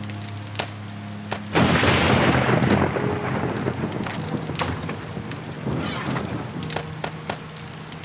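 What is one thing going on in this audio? Inventory items click as they are moved.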